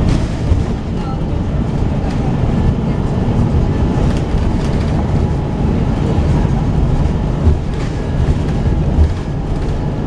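A vehicle's engine rumbles steadily from inside as it drives along a road.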